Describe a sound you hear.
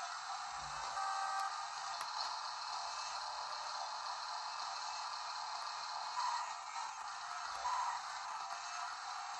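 Tinny game music and electronic sound effects play from a small handheld speaker.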